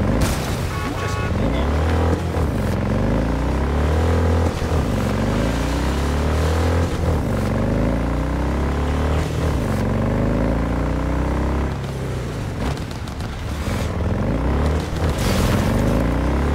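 A motorcycle engine revs up and down repeatedly as gears shift.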